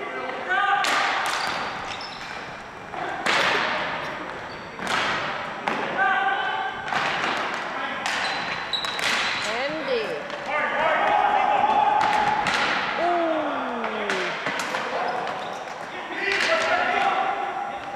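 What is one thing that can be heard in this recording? Players shout in an echoing gym.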